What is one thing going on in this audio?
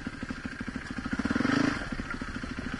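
A dirt bike engine revs up briefly.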